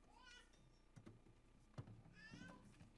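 A wooden drum knocks and thumps as it is set down.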